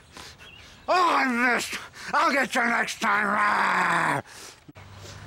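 An older man growls and snarls theatrically, close by.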